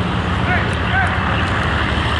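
Young men shout to each other in the distance across an outdoor pitch.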